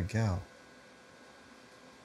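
A rubber stamp thumps down onto paper.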